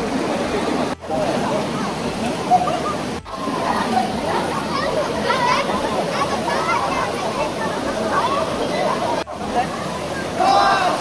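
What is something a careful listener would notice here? A crowd of children and adults chatter and shout outdoors.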